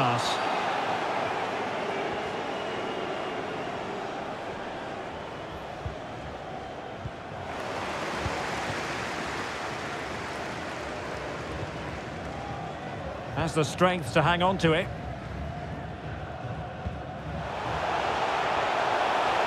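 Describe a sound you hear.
Players' boots kick a football with dull thuds.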